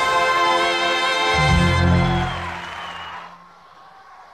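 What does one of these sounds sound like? A young woman sings a long, loud held note, then stops.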